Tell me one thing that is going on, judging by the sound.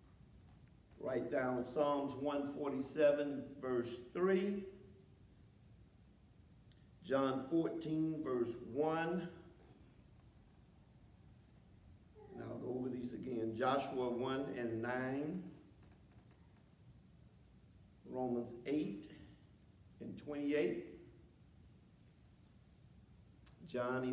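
A middle-aged man preaches through a microphone in phrases with long pauses, in a room with a slight echo.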